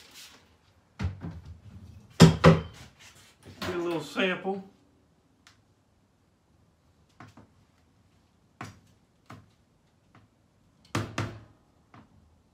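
Metal clanks against the rim of a plastic cooler.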